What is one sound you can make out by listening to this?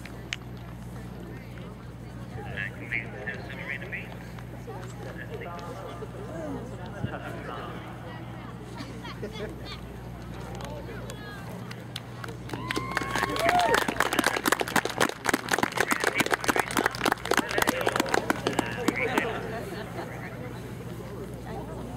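A horse trots with soft hoofbeats on dirt.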